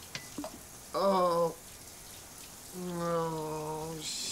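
A man groans and whimpers in distress close by.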